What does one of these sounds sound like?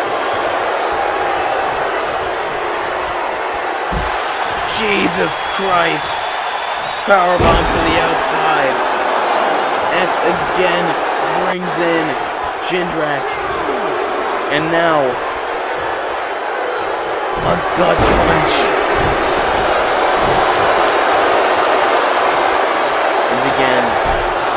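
A large crowd cheers and roars steadily in a big hall.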